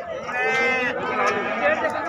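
Men talk in the background.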